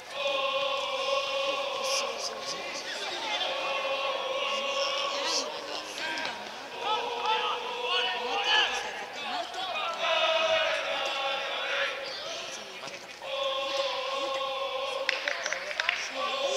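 A crowd of supporters chants and sings loudly outdoors.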